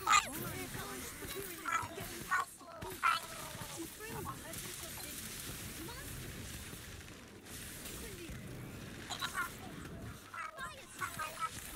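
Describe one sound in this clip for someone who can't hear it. Game spell effects crackle and burst during a battle.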